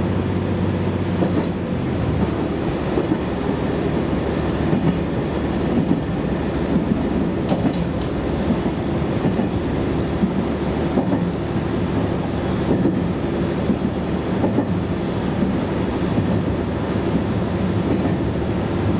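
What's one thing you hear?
A train's engine rumbles steadily from inside the car.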